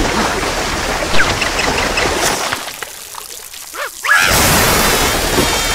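Water sprays out in a hissing jet.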